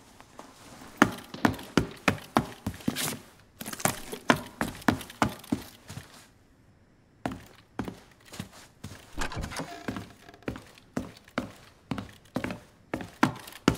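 Footsteps thud quickly across wooden floorboards.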